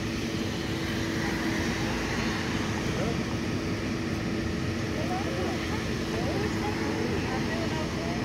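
Cars drive past close by on the road.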